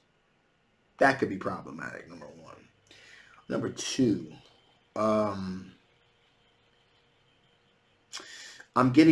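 A man speaks calmly and thoughtfully into a close microphone, with pauses.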